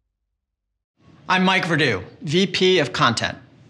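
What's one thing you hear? A middle-aged man speaks calmly, close to a microphone.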